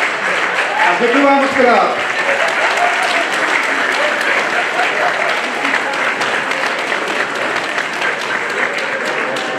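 An audience claps.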